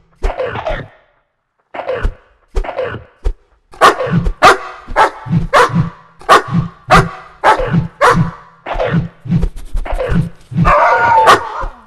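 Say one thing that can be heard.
Dogs snarl and growl as they fight.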